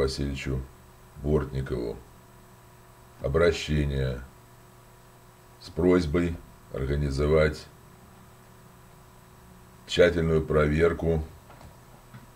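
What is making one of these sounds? An elderly man speaks calmly in short phrases close to a microphone.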